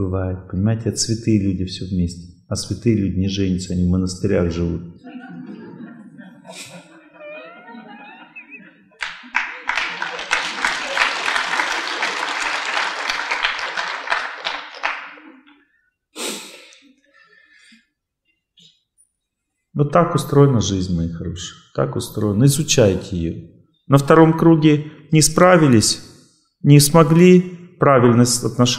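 A middle-aged man speaks calmly and with animation through a microphone in a large hall.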